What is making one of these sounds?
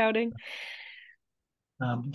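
A woman laughs softly over an online call.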